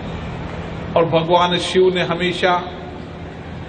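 A man speaks loudly into a microphone over a loudspeaker.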